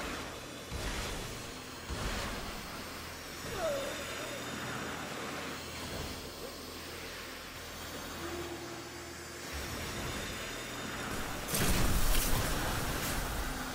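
A sword swings with a heavy whoosh and a loud impact.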